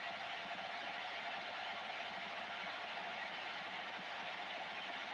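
Static hisses steadily from a radio loudspeaker.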